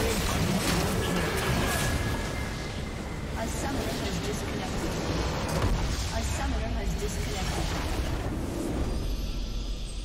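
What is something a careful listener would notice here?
Game spell effects and attacks clash and crackle in a busy battle.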